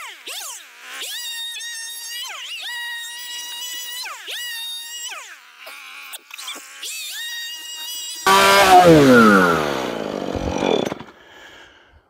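A chainsaw engine whines loudly as the saw cuts through wood, then winds down.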